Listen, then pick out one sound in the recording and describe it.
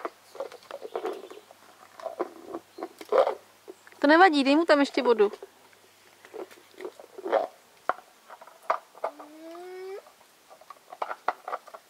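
A puppy laps water from a bowl.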